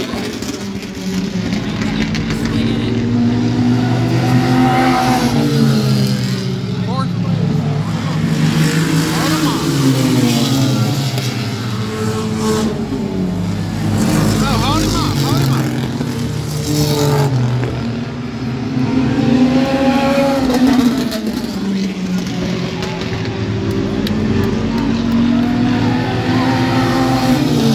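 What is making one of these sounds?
Several race car engines roar loudly and rise and fall in pitch as the cars pass close by.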